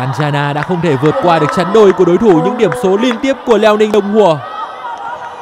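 A large crowd cheers and claps loudly in an echoing hall.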